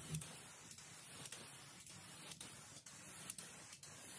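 An aerosol can hisses as paint sprays out in short bursts.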